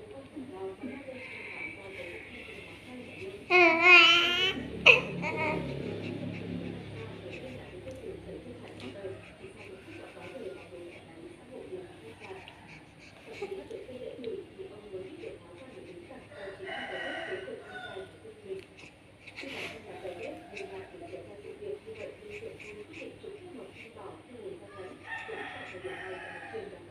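A baby coos and babbles softly, close by.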